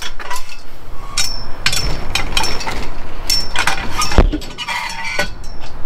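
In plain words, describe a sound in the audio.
A chain-link fence rattles and clinks.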